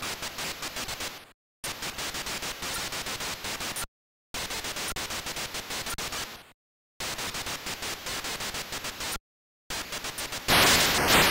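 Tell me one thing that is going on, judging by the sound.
Harsh electronic game noise pulses in rapid bursts, broken by short silences, and ends in a loud hiss.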